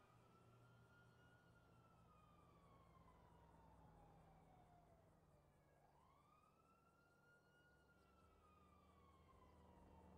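A car drives past on a road.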